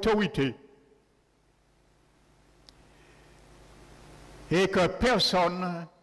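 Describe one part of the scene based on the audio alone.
A man preaches with emphasis through a microphone.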